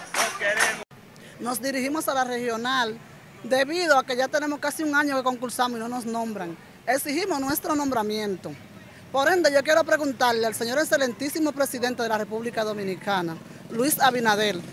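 A woman speaks with feeling close to a microphone.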